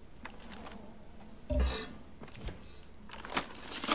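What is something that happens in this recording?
Scrap metal clinks as it is picked up.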